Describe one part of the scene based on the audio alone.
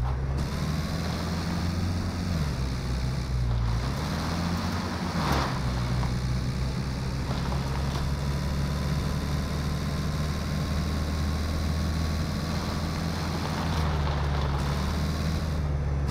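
A car engine hums steadily and revs up and down as it drives.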